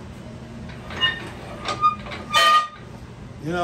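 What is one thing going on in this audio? Metal tools clink and tap against a lathe.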